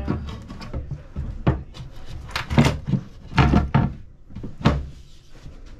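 A cutting board knocks and thumps against a countertop.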